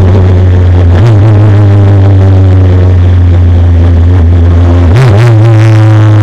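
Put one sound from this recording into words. A racing car's engine blips on downshifts as it brakes for a corner.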